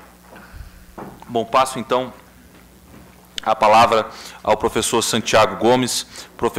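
A man speaks calmly into a microphone over a loudspeaker in a large room.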